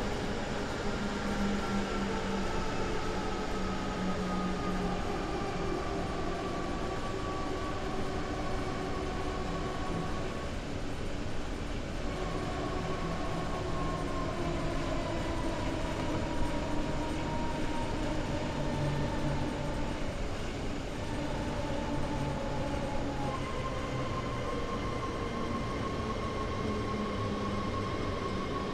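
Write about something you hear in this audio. Train wheels rumble and clatter steadily on the rails.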